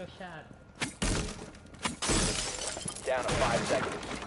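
A wall bursts apart with a loud crash.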